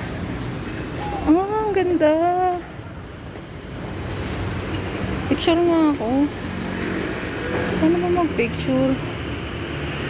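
A middle-aged woman speaks calmly close to the microphone, slightly muffled.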